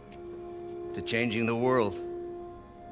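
A middle-aged man speaks calmly and warmly.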